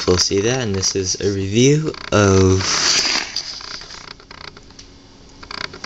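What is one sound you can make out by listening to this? A plastic toy package rustles and scrapes as it is moved on a hard surface.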